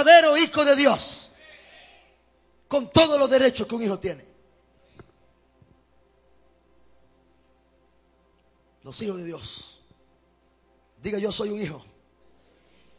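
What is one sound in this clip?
A man speaks with animation through a microphone, in short bursts with pauses, in an echoing hall.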